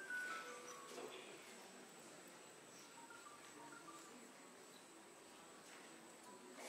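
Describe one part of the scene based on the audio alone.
Traditional string instruments play a quiet melody.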